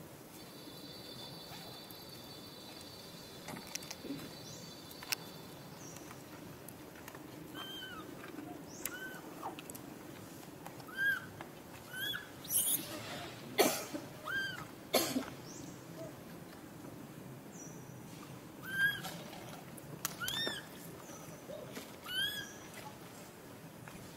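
A small monkey chews and munches on a flower.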